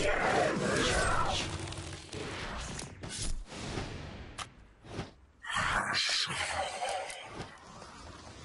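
Magic spells crackle and whoosh in bursts.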